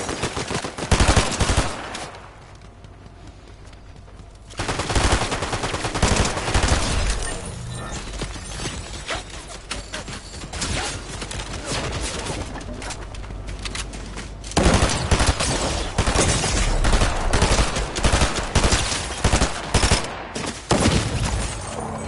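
A rifle fires bursts of rapid shots.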